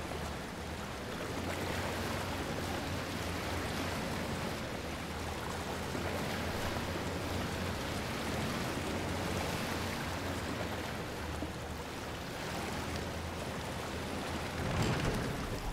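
A small boat glides through water in an echoing tunnel.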